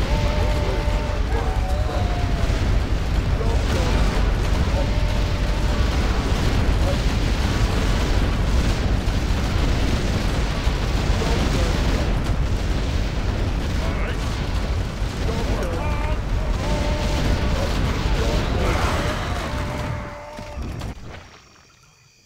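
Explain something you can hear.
Spells crackle and blast over and over in a dense battle.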